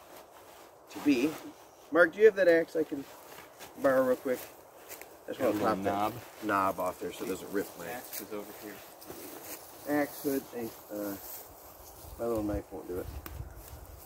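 A middle-aged man talks calmly close by, outdoors.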